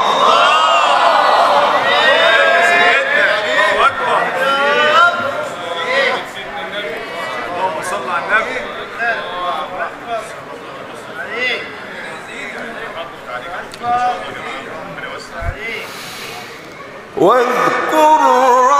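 A man chants in a melodic voice through a microphone and loudspeakers.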